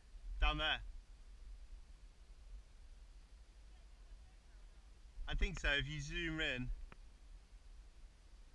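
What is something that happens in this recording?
Water laps softly against a kayak.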